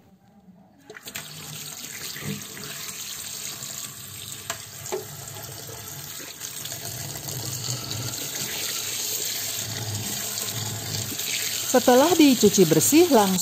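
Water runs and splashes onto a metal strainer.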